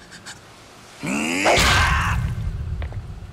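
A man lets out a fierce, drawn-out yell.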